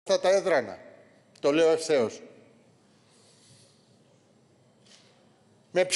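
An elderly man speaks loudly and firmly into a microphone, in short bursts.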